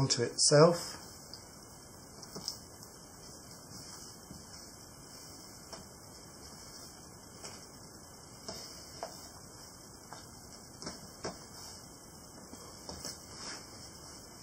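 Cloth rustles softly as it is folded.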